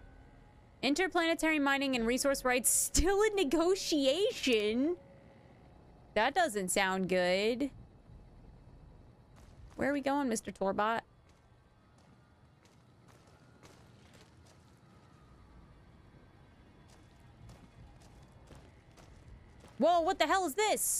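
A young woman talks with animation into a microphone, in short bursts.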